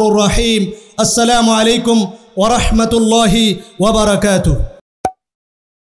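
A young man speaks loudly and with feeling through a microphone and loudspeakers.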